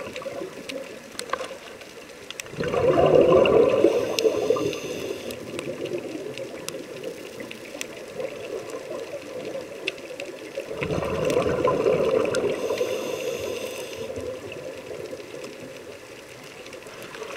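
A scuba diver breathes in with a faint hiss from a regulator.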